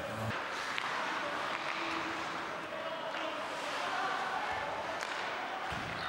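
A stick clacks against the puck.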